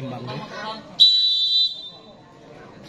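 A referee blows a whistle in a long, shrill blast.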